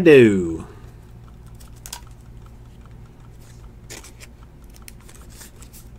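Trading cards rustle and tap softly as they are handled.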